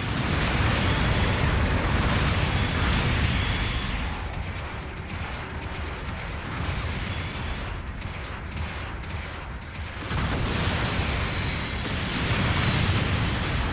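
A giant robot's thrusters roar steadily.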